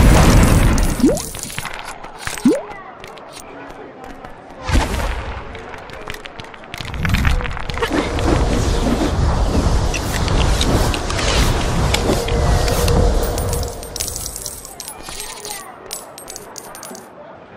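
Coins jingle as they scatter.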